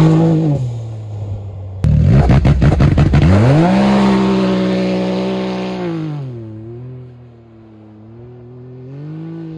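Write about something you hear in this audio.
A turbocharged three-cylinder side-by-side UTV engine revs and pulls away.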